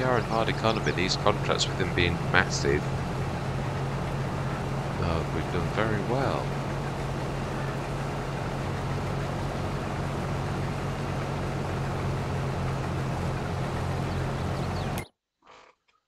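Grain pours from an unloading auger into a trailer.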